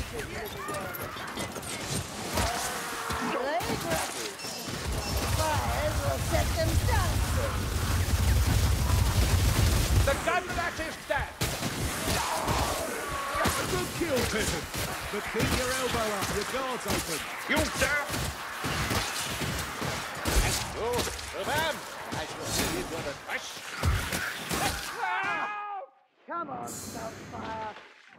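Blades slash and hack into creatures in quick, repeated strikes.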